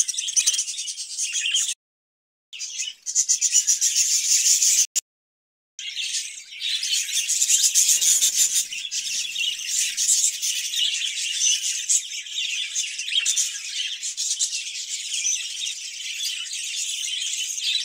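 Many budgerigars chirp and chatter busily close by.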